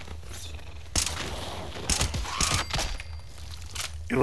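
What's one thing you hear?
A rifle fires several loud shots in quick succession.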